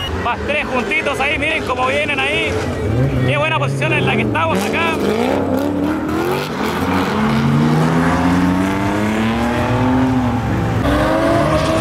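Car engines rev loudly and roar.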